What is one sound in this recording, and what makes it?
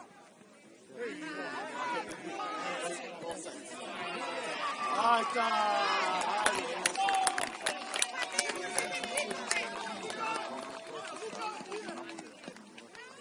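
A crowd of spectators cheers and shouts excitedly.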